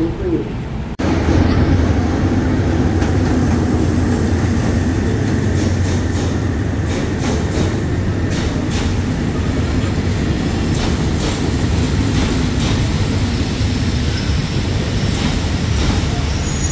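A train rolls past close by, rumbling and clattering on the rails.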